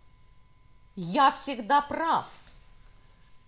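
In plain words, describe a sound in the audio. A middle-aged woman speaks briefly and calmly nearby.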